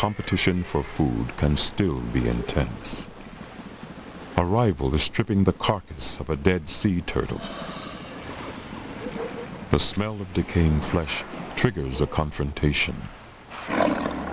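Large reptiles growl and snarl close by.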